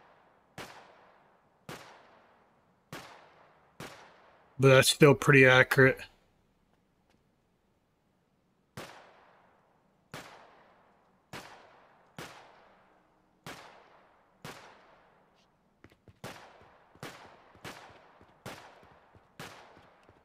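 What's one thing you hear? Shots fire one after another, each with a short ringing tail.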